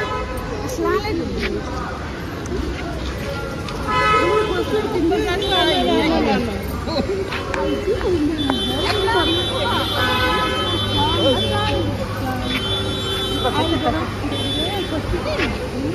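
Several women talk with emotion close by.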